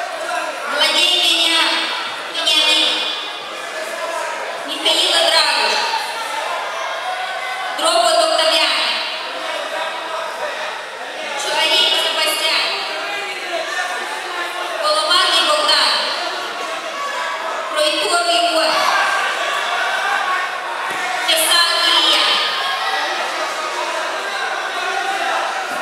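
Men shout loud instructions across an echoing hall.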